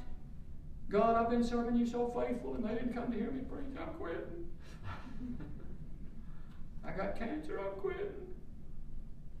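An older man speaks slowly and calmly into a microphone.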